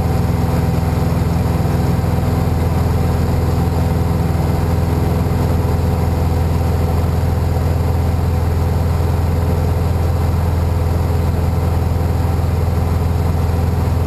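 Wind rushes past the cabin.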